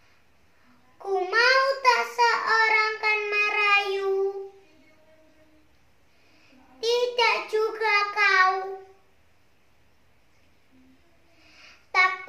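A young girl recites loudly in a sing-song voice, in short bursts with pauses.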